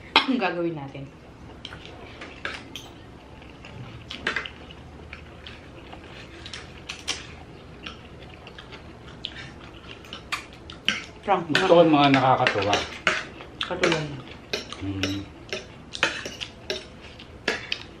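People chew and slurp food loudly.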